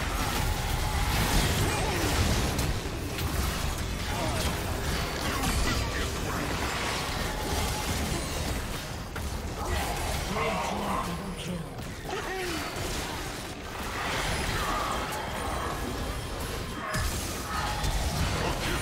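Spell blasts and hits crackle and boom from a video game battle.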